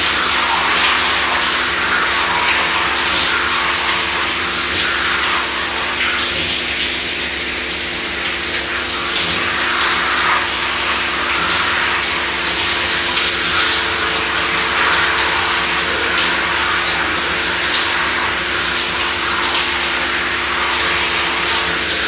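Water from a shower sprays steadily and splashes.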